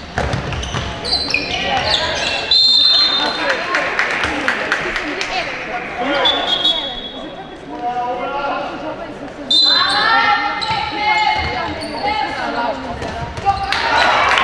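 Shoes squeak sharply on a hard floor in a large echoing hall.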